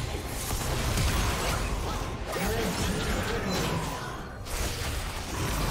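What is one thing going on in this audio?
Blows and explosions thud in quick succession.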